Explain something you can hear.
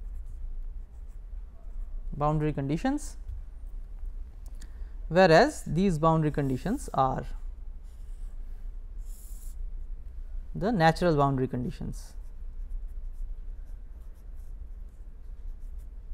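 A felt pen squeaks and scratches across paper.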